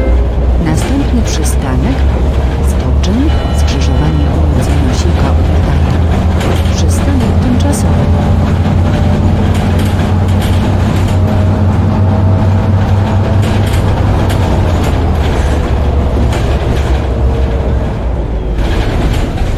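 Tyres rumble and rattle over cobblestones.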